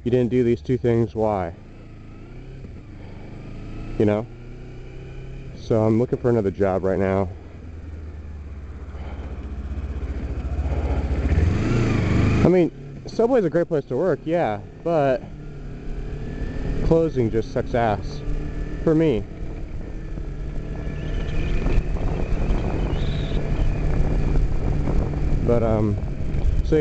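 A motorcycle engine rumbles and revs as it rides along.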